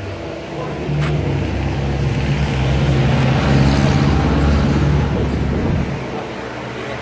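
A vehicle rumbles past on a street outdoors.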